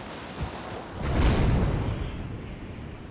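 A strong gust of air rushes up loudly and slowly fades.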